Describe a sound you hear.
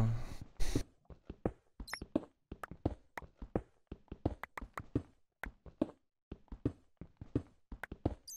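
A pickaxe chips at stone blocks in quick, repeated taps.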